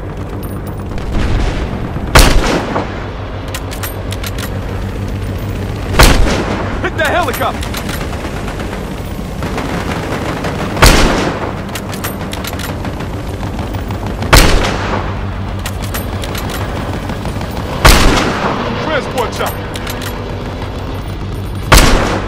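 A helicopter's rotor thrums overhead.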